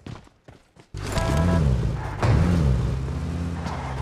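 A car engine starts and idles with a low rumble.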